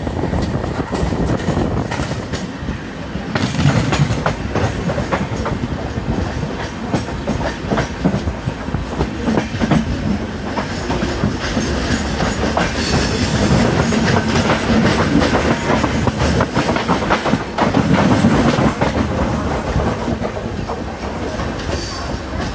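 Wind rushes loudly past an open train door.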